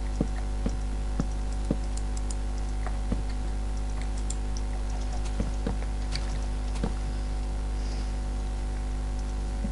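Soft wooden knocks sound as blocks are placed.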